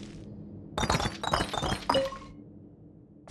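A treasure chest opens with a burst of bright, sparkling chimes.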